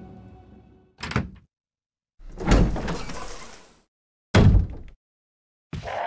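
A heavy wooden door creaks open and shuts with a thud.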